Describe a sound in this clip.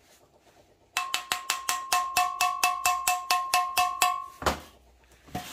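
A small metal tool clicks rapidly.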